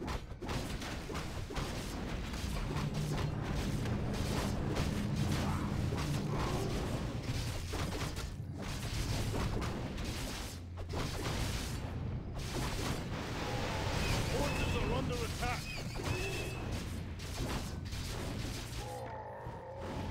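Weapons clash and spells burst in a game battle.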